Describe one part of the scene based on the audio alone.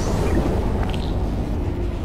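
A carried metal box hums and crackles with electricity.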